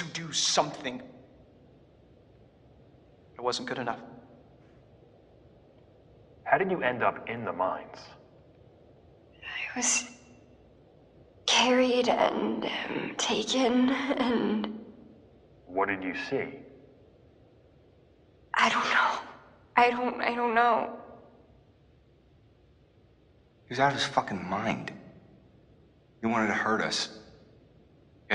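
A young man speaks quietly, with pauses.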